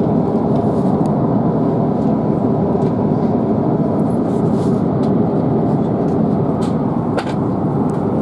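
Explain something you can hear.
A jet airliner's engines drone steadily from inside the cabin.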